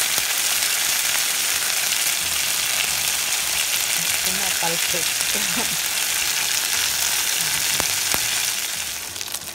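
Fish sizzles steadily in hot oil.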